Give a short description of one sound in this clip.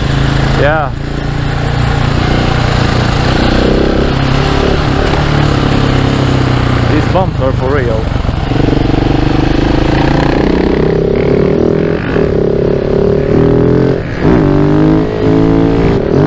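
A single-cylinder four-stroke supermoto motorcycle revs and shifts gears while riding.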